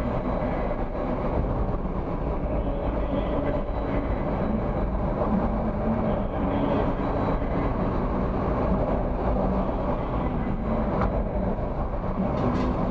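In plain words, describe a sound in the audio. Tyres roll over a paved road with a steady rumble.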